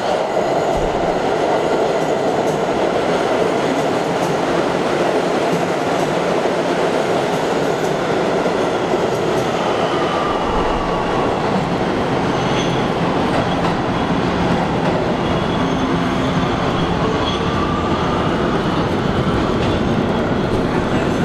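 A subway train rumbles and clatters loudly along the tracks in an echoing space.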